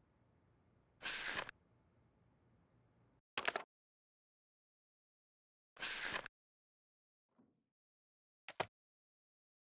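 Book pages turn with a papery rustle.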